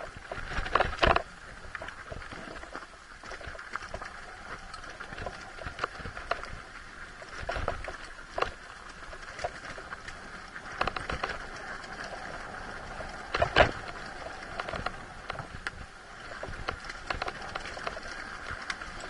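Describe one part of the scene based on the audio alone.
Tyres crunch and bump over loose rocks.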